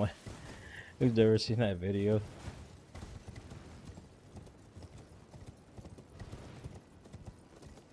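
Hooves clop on stone steps.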